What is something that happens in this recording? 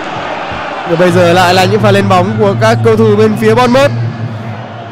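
A stadium crowd bursts into a loud, brief chant.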